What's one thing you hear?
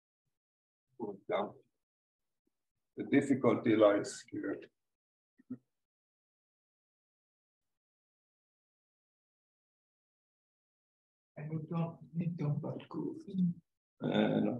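A young man lectures calmly, pausing between phrases.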